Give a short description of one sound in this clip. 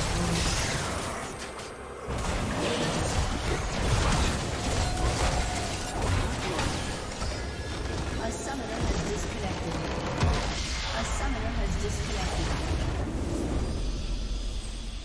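Video game spell effects crackle and boom in a fast battle.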